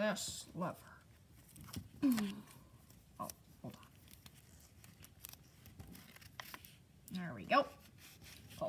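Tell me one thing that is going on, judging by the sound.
Paper rustles and crinkles between fingers.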